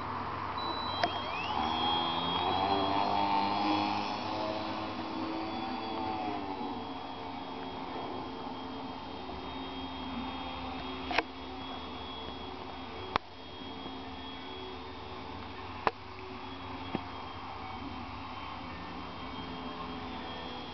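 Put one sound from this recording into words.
A small model plane's motor whines steadily overhead, growing fainter as the plane climbs away.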